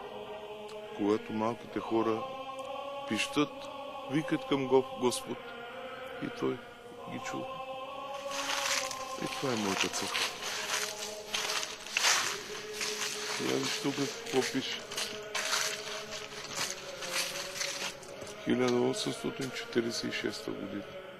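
A middle-aged man speaks calmly close by.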